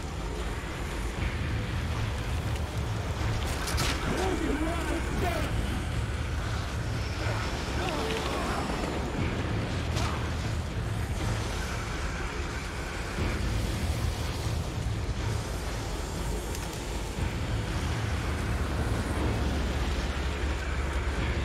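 A fire roars with a low, steady rumble.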